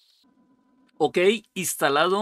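A middle-aged man speaks with animation into a microphone, close by.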